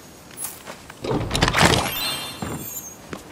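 A treasure chest creaks open with a sparkling chime.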